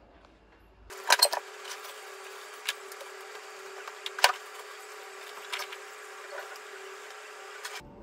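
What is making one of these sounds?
Belongings rustle and clunk as a bag is packed.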